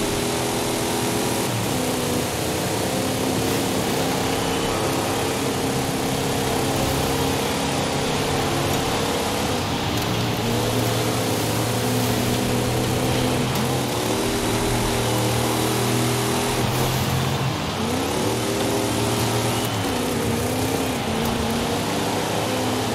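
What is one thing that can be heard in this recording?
A powerful car engine roars and revs up and down through gear changes.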